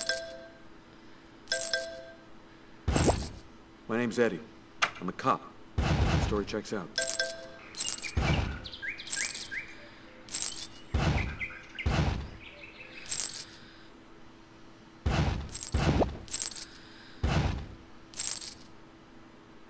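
Cash register chimes and coin jingles ring out again and again.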